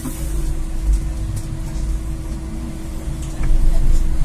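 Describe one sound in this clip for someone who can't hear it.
A bus rattles and creaks as it creeps forward in traffic.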